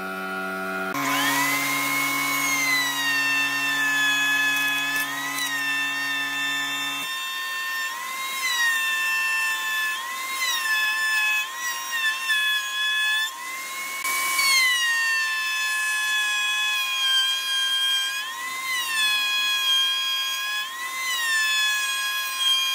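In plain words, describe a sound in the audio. A router table whines at high speed, its pitch dipping as hardwood is fed through the bit.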